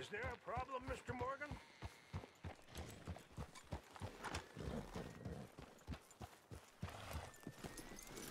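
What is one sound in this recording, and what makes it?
Horse hooves clop steadily at a walk on a dirt path.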